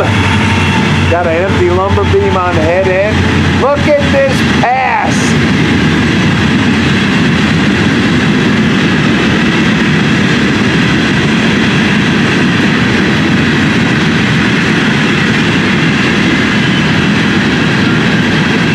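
A freight train of empty hopper cars rolls past on steel rails.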